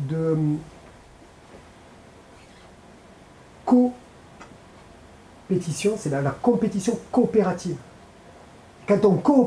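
A man speaks calmly through a microphone in a large room, with pauses.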